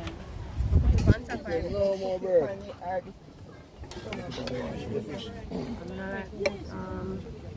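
A metal lid clanks on a pot.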